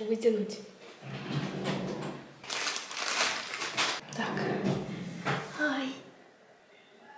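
Plastic packaging crinkles in a girl's hands.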